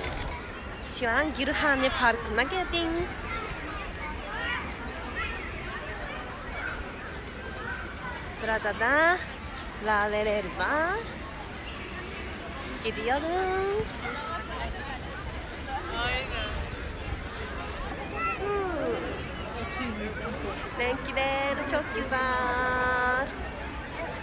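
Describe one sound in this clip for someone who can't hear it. A young woman talks cheerfully and close to a microphone.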